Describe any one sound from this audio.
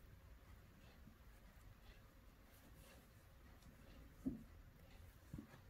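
Yarn rustles softly against crocheted fabric as hands work it.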